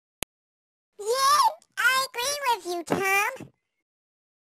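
A high-pitched cartoon female voice speaks playfully.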